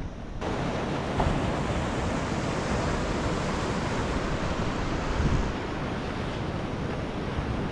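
Waves wash and break on a sandy shore.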